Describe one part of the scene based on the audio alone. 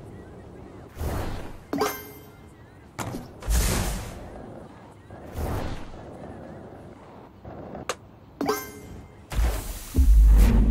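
Sharp whooshing hits strike several times.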